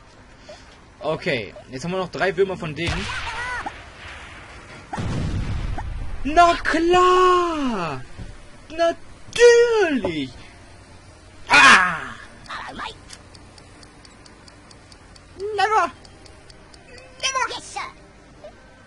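A young man talks excitedly and exclaims into a close microphone.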